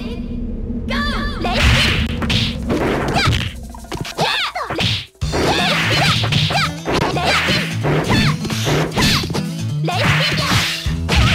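Punches and kicks land with sharp smacks.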